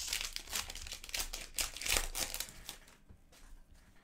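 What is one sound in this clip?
Cards shuffle and rustle in a stack.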